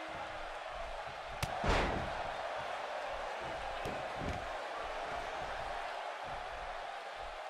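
A large crowd cheers steadily in an echoing arena.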